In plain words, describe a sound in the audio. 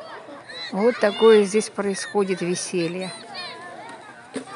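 Children chatter and call out outdoors.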